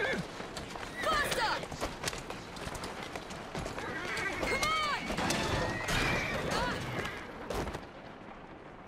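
A horse-drawn carriage rattles over cobblestones.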